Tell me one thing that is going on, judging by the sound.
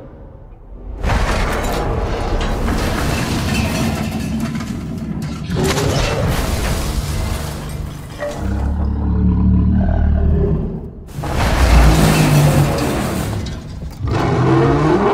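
Metal screeches and groans as a train car is bent and crushed.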